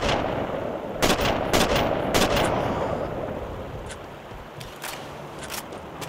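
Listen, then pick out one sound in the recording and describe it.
Rifle shots crack loudly and echo one after another.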